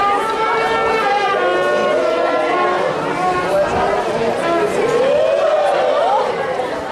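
A marching band plays loud brass music outdoors.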